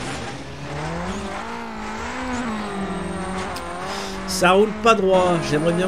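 A rally car engine roars.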